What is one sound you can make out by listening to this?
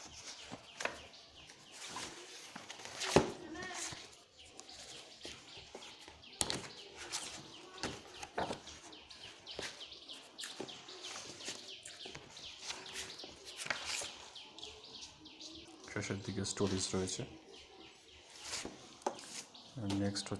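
Books are handled with soft knocks and thumps.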